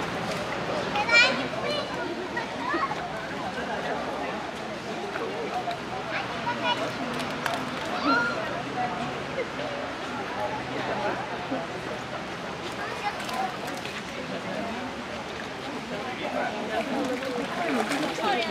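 Monkeys splash and paddle in water.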